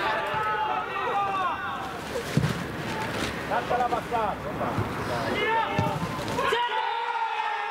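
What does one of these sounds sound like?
A football thuds off a player's foot.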